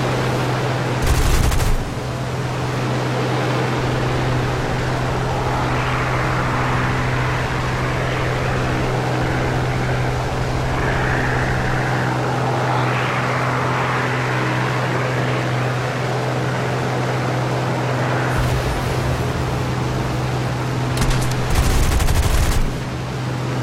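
Aircraft machine guns fire in loud, short bursts.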